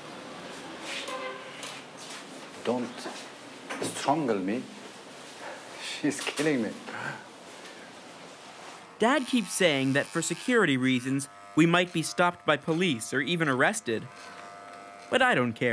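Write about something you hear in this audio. A middle-aged man talks.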